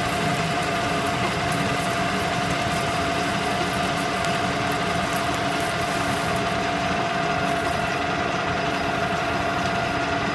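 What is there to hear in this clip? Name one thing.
A metal lathe whirs steadily as a cutting tool shaves metal.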